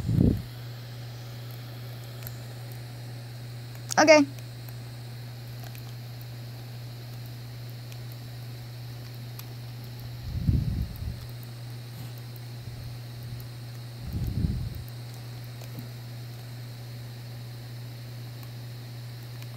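Video game sound effects play through a small handheld speaker.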